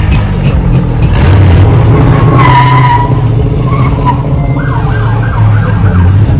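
A motorcycle engine rumbles as it rides past.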